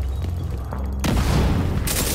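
Gunfire rattles loudly close by.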